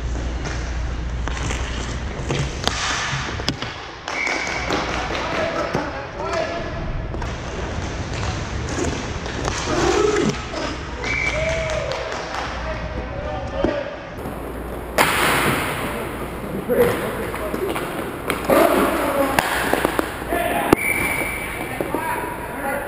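Roller skate wheels roll and scrape on a hard floor in a large echoing hall.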